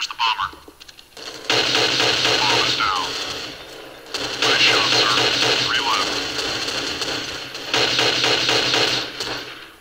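A semi-automatic sniper rifle fires several shots.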